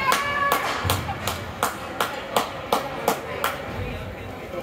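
Spectators clap in rhythm in an echoing rink.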